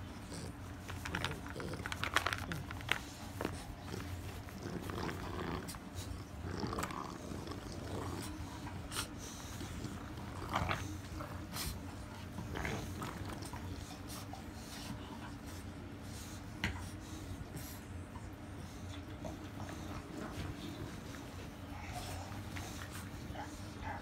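Puppies growl and snarl playfully while tugging a toy.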